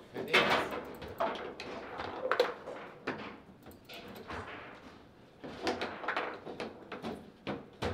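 Foosball rods clack and rattle as players spin them.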